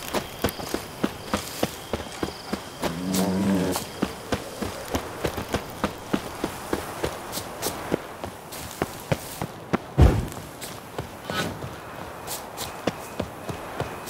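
Footsteps run quickly over a dirt path.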